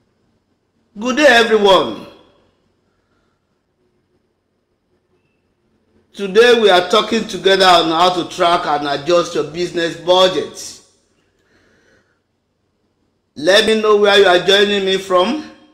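A middle-aged man speaks calmly and earnestly into a close microphone, pausing between phrases.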